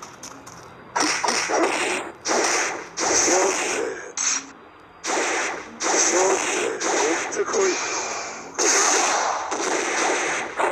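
Punches and kicks land with sharp thuds and whooshing blasts in a fighting game.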